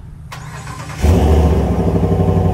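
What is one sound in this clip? A truck engine starts up with a sudden roar.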